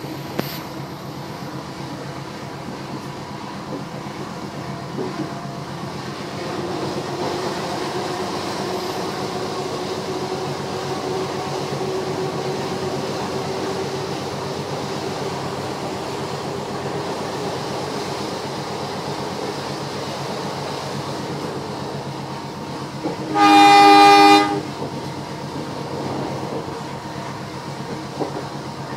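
A diesel-electric locomotive engine idles with a steady rumble.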